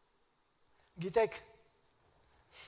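An elderly man speaks briefly and calmly into a microphone in a large echoing hall.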